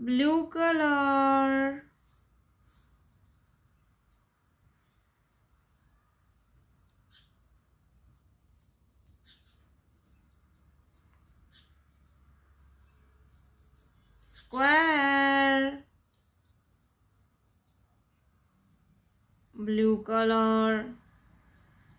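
A paintbrush brushes softly across paper.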